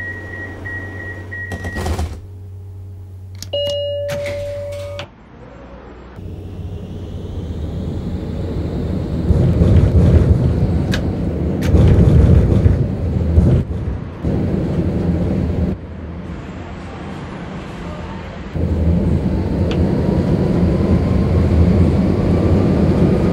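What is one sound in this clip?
A tram's motor hums and rumbles as the tram speeds up.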